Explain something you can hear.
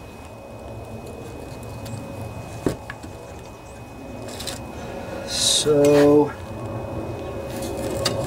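Metal engine parts knock and clunk as they are handled.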